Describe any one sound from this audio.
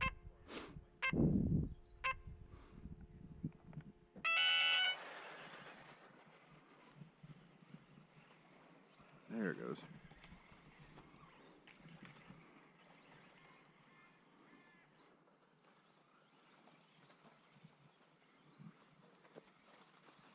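Small remote-controlled cars whine and buzz as they race.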